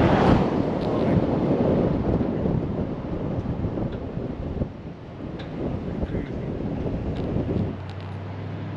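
Wind rushes loudly past a moving vehicle.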